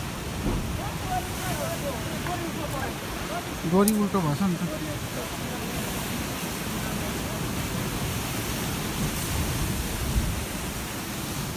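Waves crash and surge against rocks below.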